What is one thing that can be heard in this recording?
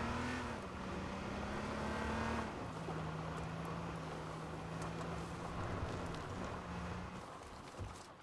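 A car engine hums steadily as a car drives over grass.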